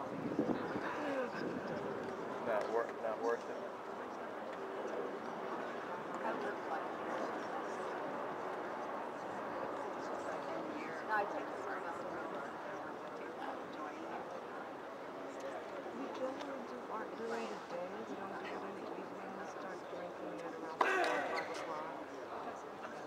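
A crowd murmurs and chatters throughout a large open stadium.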